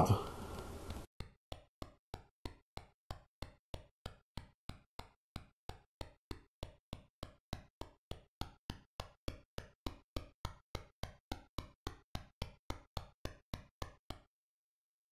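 Short electronic blips tick in a steady beat, gradually speeding up.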